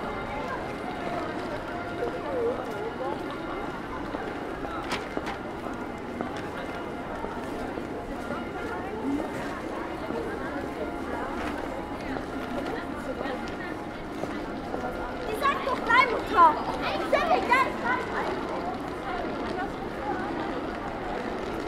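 Footsteps tap on wet paving stones.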